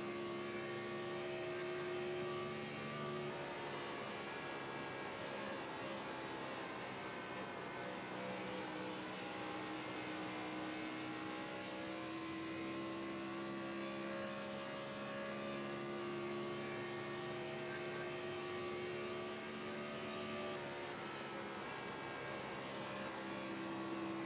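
A race car engine roars steadily, rising and falling in pitch through the turns.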